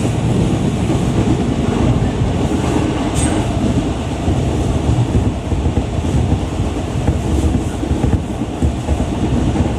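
A vehicle rumbles steadily as it drives along.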